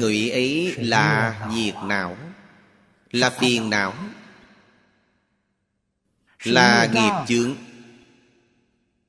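An elderly man speaks calmly and expressively into a microphone, in short phrases with pauses.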